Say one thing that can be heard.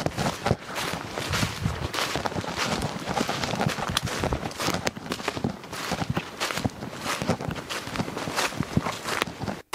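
Footsteps crunch through dry leaves on a woodland path.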